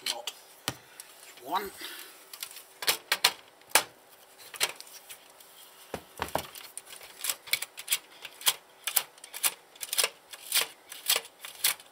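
Small plastic and metal parts click and clatter close by.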